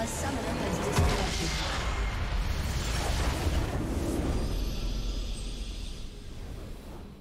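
A magical structure bursts apart with a loud, rumbling explosion.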